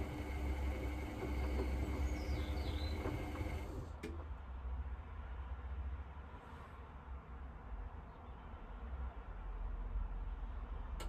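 A washing machine drum turns with a low steady hum.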